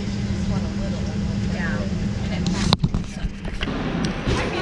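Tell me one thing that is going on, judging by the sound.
An airliner's cabin hums with a steady low drone.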